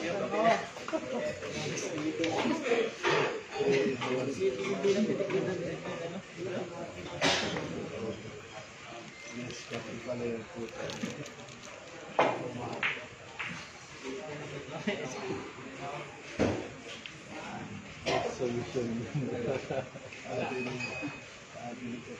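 A crowd of men murmur and chat nearby.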